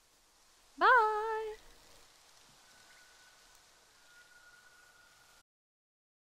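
Soft jungle ambience murmurs quietly in the background.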